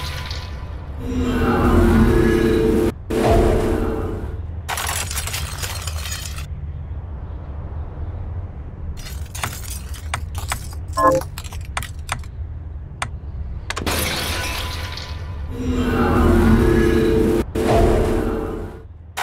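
A deep magical whoosh swells and rumbles.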